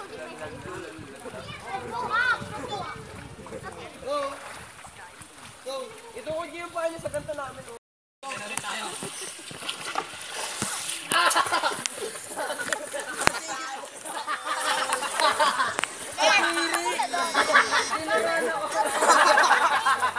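Water splashes as swimmers move about.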